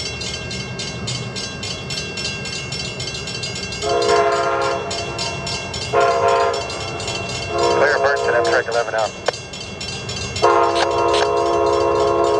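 A train rumbles closer along the tracks.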